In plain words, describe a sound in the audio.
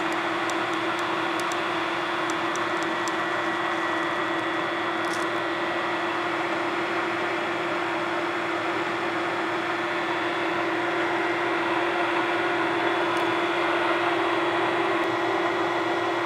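A milling machine hums steadily throughout.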